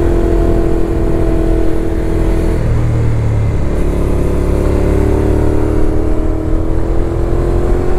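A motorcycle engine roars close by, dropping in pitch at a gear change, then rising again.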